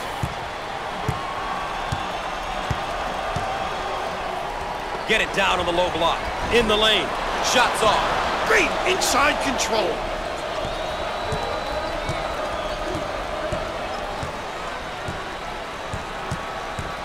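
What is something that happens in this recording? A large crowd murmurs steadily in an echoing arena.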